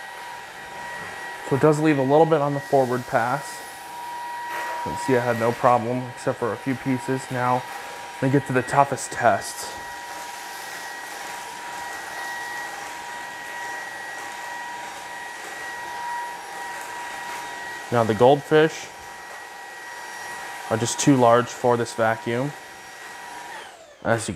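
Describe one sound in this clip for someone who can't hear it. A cordless vacuum cleaner hums with a steady high whine.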